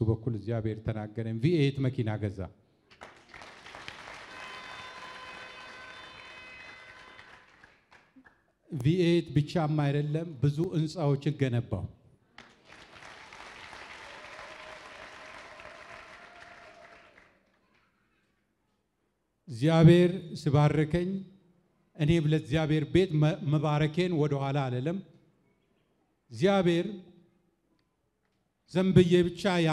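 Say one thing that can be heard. A man speaks with animation through a microphone and loudspeakers, pausing between phrases.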